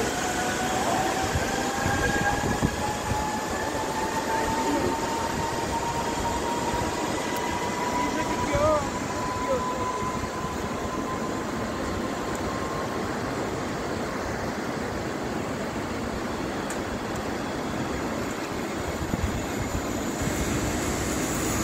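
A river rushes steadily over rocks.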